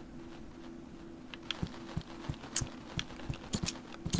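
A goose's feet patter softly on the ground.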